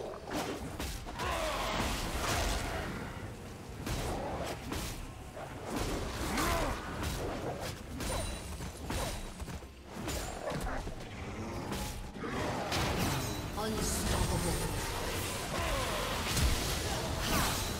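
Fantasy spell effects whoosh and crackle.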